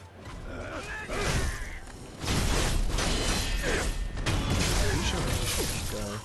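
Swords clash and scrape in a fight.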